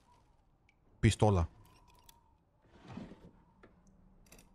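A wooden drawer scrapes open.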